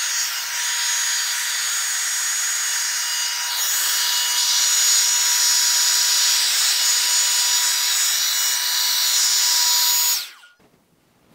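A hot air brush blows and whirs loudly.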